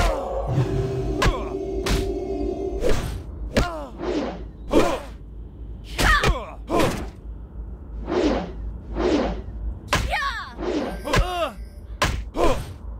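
Weapons clash and strike in quick, repeated blows.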